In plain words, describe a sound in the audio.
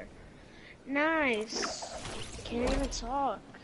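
A glider snaps open with a whoosh.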